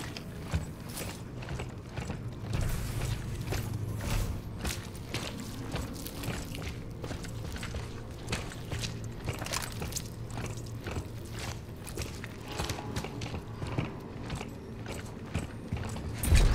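Heavy boots thud in quick footsteps on a hard floor.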